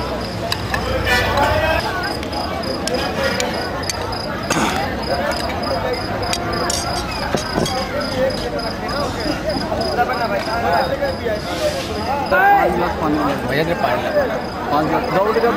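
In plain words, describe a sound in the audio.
Many men and women chatter all around at a crowded gathering.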